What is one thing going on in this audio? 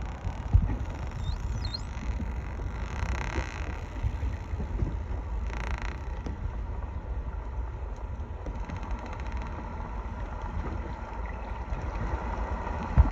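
Wind blusters across the open water.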